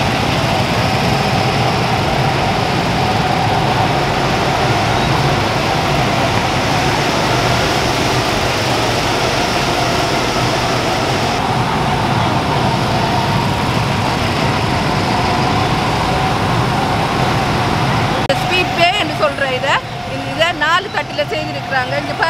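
Go-kart engines drone steadily in the distance.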